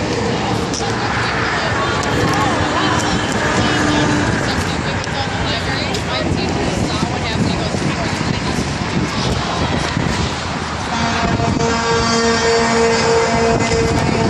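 Traffic roars past on a highway below.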